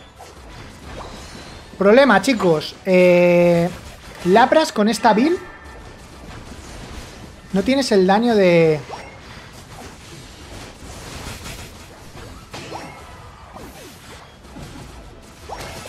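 Video game sound effects whoosh and chime quietly in the background.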